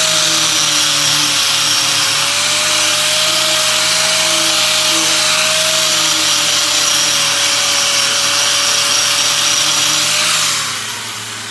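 An angle grinder whines loudly as it grinds metal.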